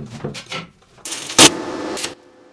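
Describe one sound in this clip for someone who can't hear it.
An electric welder crackles and hisses in short bursts.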